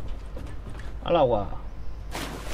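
A young man talks briefly into a close microphone.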